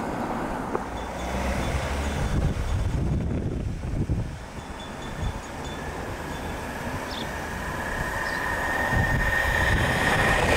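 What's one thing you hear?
A van engine idles nearby.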